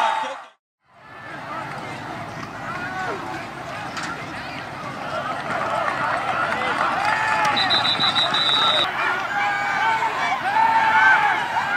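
Football players shout and call out across an open field.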